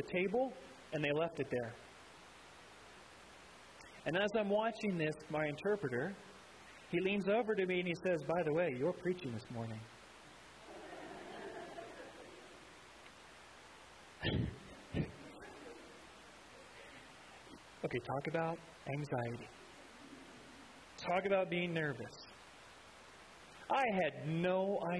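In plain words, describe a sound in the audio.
A middle-aged man speaks calmly through a microphone, in phrases with pauses between them.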